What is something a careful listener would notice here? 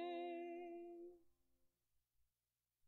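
A woman sings a long held note through a microphone, and it fades away in an echoing hall.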